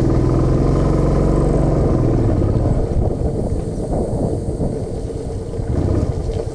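A motorcycle engine chugs steadily up close.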